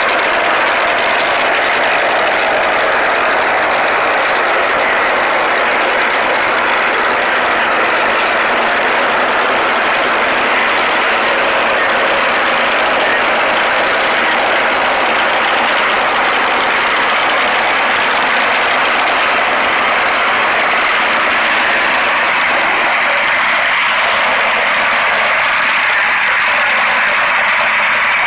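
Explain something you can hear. Powerful racing engines roar loudly nearby.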